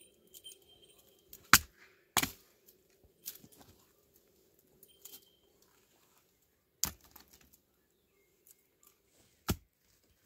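Dry branches rustle and snap as they are pulled.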